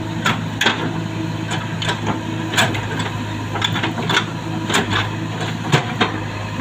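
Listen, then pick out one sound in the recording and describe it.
A digger bucket scrapes and knocks through soil and rubble.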